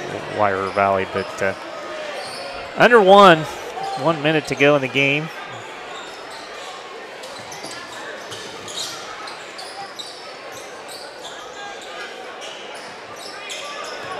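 A basketball bounces on a wooden court.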